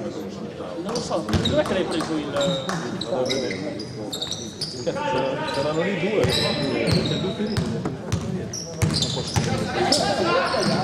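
Sneakers squeak on a hardwood court in an echoing gym.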